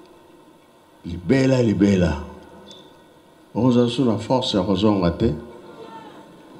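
An elderly man speaks forcefully in short phrases through a microphone and loudspeakers.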